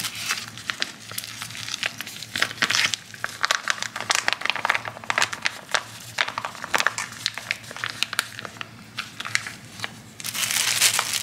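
A plastic pouch crinkles and rustles in hands.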